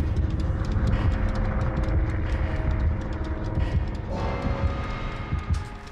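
Footsteps thud on creaky wooden floorboards.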